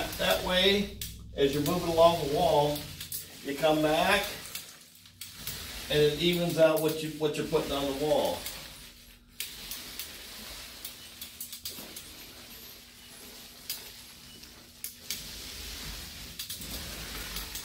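A paint roller rolls softly against a wall.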